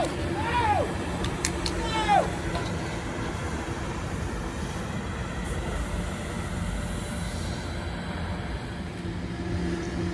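A bus pulls away and drives off.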